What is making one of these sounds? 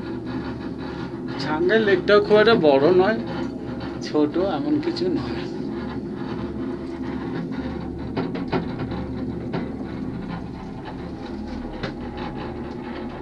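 A cable car cabin hums and rumbles steadily as it glides along its cable.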